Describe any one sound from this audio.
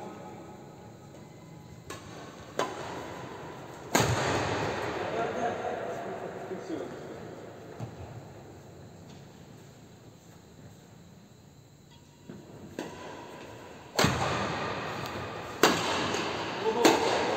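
Footsteps squeak and thud on a wooden court in a large echoing hall.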